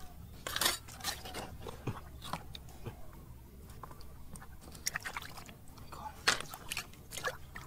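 Small stones clack and scrape against each other.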